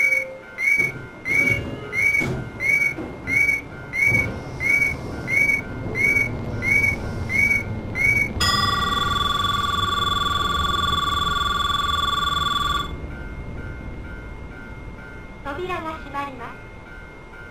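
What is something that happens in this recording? An electric commuter train rumbles past on the next track.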